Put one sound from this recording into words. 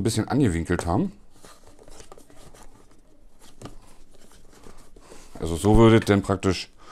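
Hands handle packaging with soft rustling.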